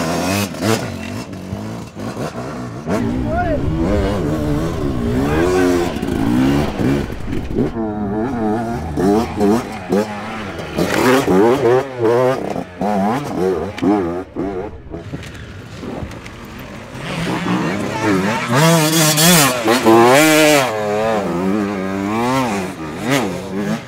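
A dirt bike engine revs hard as it climbs rocky ground.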